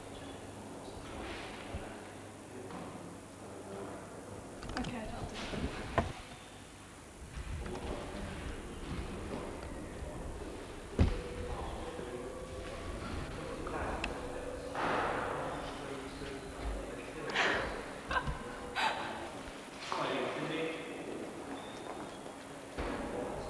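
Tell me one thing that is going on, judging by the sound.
A young man speaks nearby in a calm voice.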